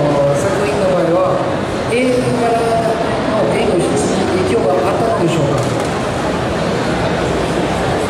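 A man speaks calmly into a microphone over loudspeakers, echoing in a large space.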